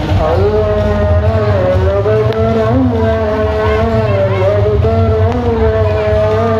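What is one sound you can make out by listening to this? A crowd of men and women chants loudly together outdoors.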